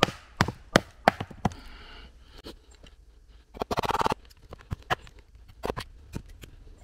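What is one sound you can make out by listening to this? A knife blade knocks sharply into wood, several times.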